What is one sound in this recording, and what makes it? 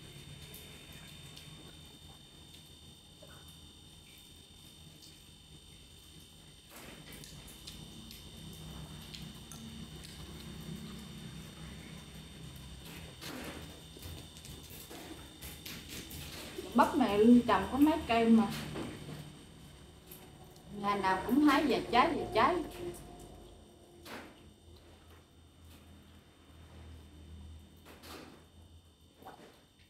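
A young woman chews and crunches food close by.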